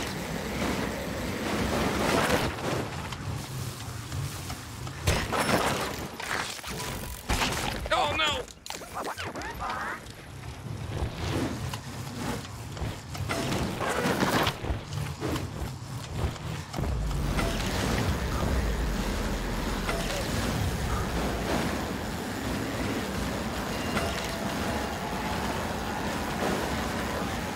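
Wind rushes past a fast downhill rider.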